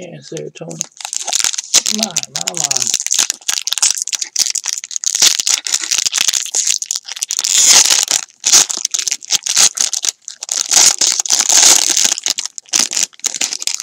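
A foil trading card pack crinkles as hands tear it open.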